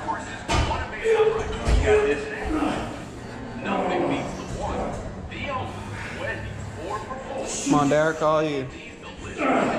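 A man grunts and strains with effort.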